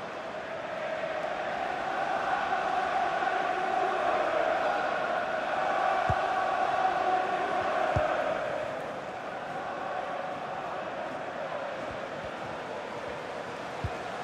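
A large stadium crowd roars steadily, swelling and then easing off.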